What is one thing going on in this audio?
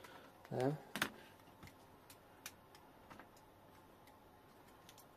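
A plastic connector clicks as hands work it.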